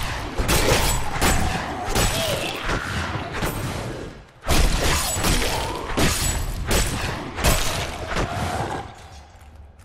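Blades clash and strike in a fierce fight.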